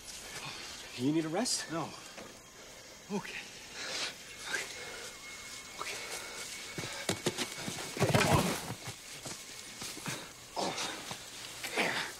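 A man grunts and breathes hard while struggling.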